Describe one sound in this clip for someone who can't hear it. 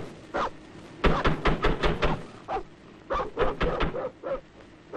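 A man speaks loudly and urgently.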